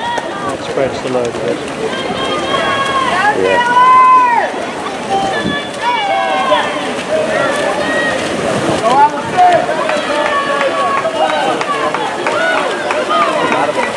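Men and women shout and cheer loudly nearby, outdoors.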